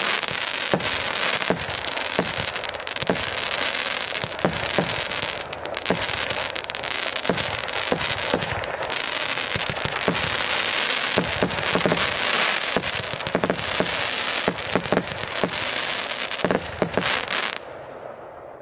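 Fireworks burst with sharp bangs and loud crackling.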